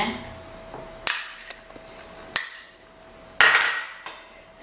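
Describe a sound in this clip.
A spoon scrapes and taps against a glass bowl.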